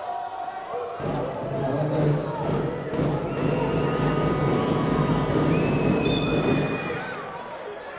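A crowd in a large echoing hall cheers loudly.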